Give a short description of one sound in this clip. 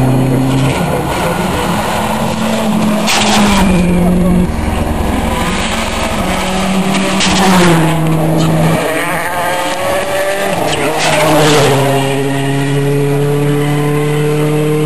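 A rally car engine roars at high revs, shifting up through the gears.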